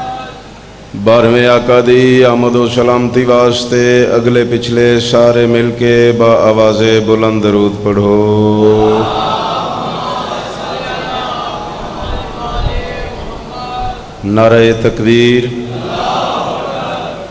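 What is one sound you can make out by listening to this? A man recites loudly in a chanting voice through a microphone and loudspeakers.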